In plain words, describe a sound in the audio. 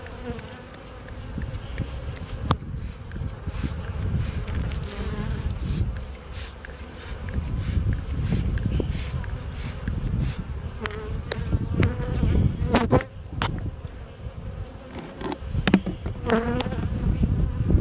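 Bees buzz steadily close by.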